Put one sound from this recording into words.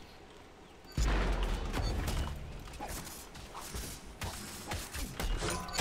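Game spell effects whoosh and burst loudly.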